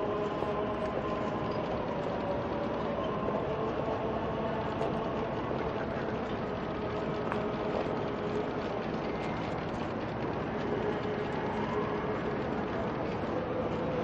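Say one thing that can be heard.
A choir of men chants slowly and steadily.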